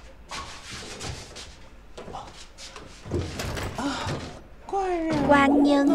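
A door latch clicks as a door is opened.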